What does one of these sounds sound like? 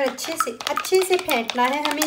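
A fork clinks against a bowl while beating eggs.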